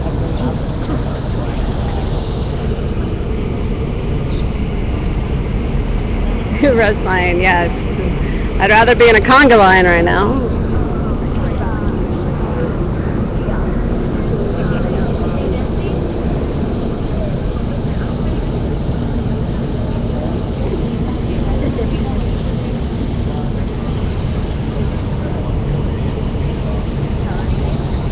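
A crowd murmurs and mills about outdoors.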